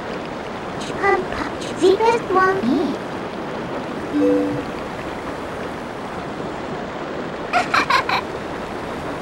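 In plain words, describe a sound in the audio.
A small creature chatters in a high, squeaky voice.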